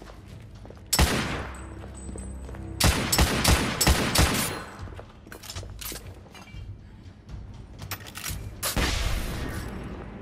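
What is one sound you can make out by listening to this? Rifle shots ring out loudly and echo in a stone tunnel.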